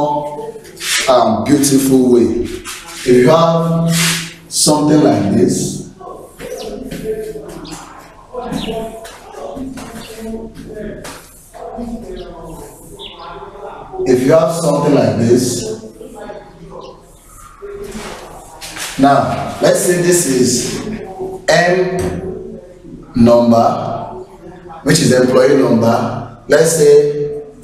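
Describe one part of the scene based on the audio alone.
A man lectures aloud close by.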